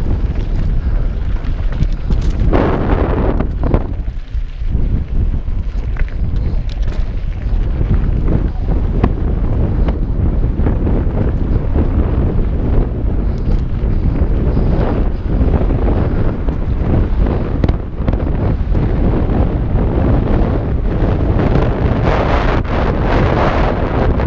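Wind rushes loudly past a helmet microphone.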